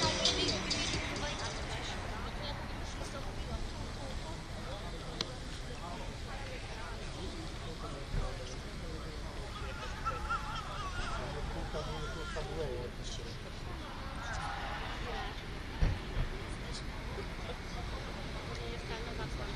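Spectators chatter quietly in the background.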